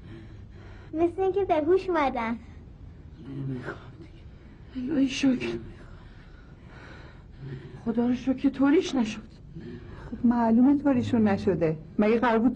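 A middle-aged woman speaks with emotion, close by.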